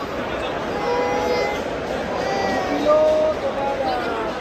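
A small child babbles nearby.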